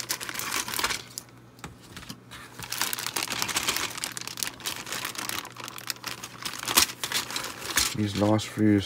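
A plastic bag crinkles and rustles up close.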